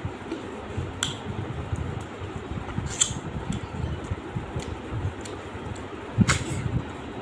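A man smacks his lips while eating.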